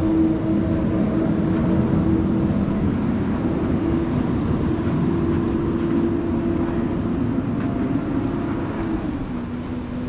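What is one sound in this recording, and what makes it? Dogs' paws patter softly on sand.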